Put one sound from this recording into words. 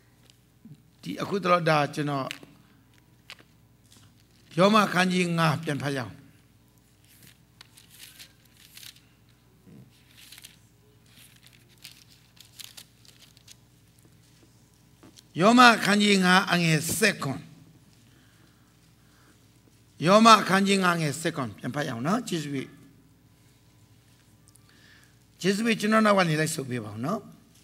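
A middle-aged man preaches forcefully in bursts through a microphone and loudspeakers, with pauses between phrases.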